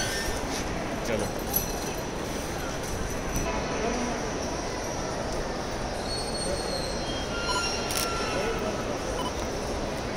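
A luggage trolley rolls along with rattling wheels.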